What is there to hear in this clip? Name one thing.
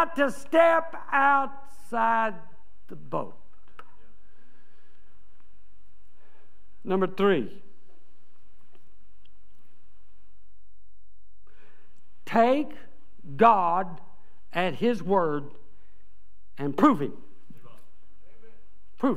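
An elderly man preaches with animation through a microphone in a large echoing hall, pausing between phrases.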